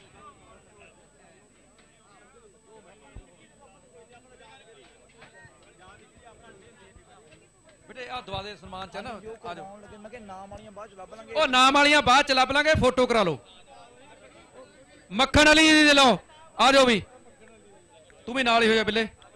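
A crowd of men chatters in the background.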